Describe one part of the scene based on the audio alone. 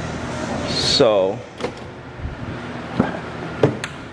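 A car door clunks.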